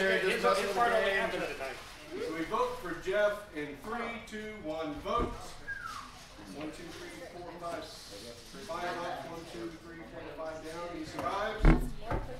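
Several men and women talk over one another nearby.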